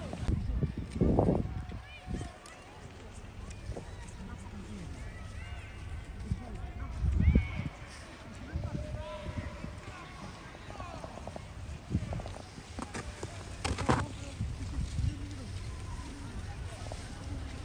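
Skis scrape and hiss over hard snow.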